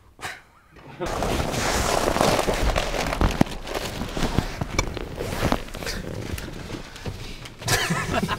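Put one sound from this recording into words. Clothes rustle and scrape as a man clambers over a car seat.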